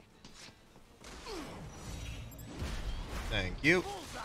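Swords clash and scrape with metallic ringing.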